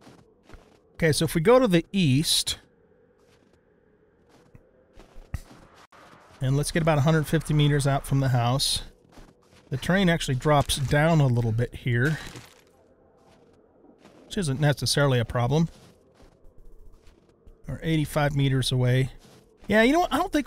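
An older man talks with animation close to a microphone.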